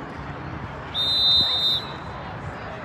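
A referee's whistle blows with one long, shrill blast.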